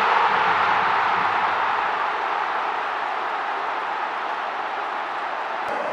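A large stadium crowd roars and cheers loudly, slowly easing off.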